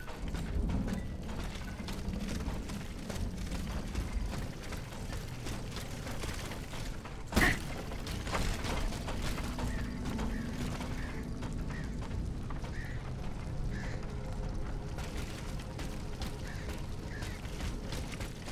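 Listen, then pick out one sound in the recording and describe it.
Rain falls steadily on stone.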